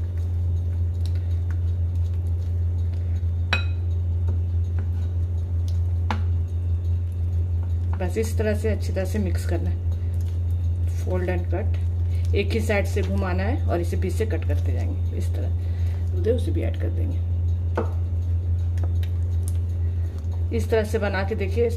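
A spatula scrapes and stirs inside a glass bowl.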